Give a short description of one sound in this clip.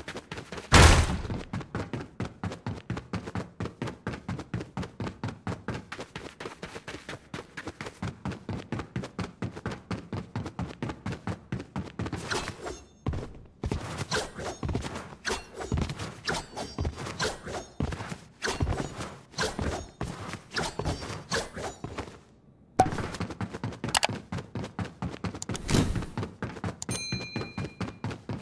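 Quick footsteps clang on a metal floor.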